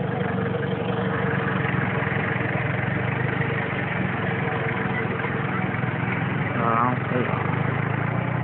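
A forklift engine hums steadily close by.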